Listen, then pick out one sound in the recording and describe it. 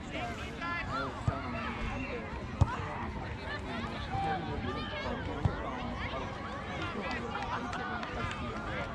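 Adult spectators chat quietly nearby.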